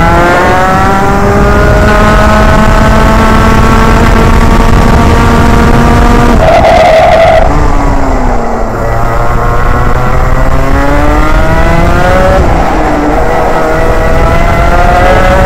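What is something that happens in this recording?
A two-stroke racing kart engine screams at full throttle, rising in pitch, dropping for a corner and climbing again.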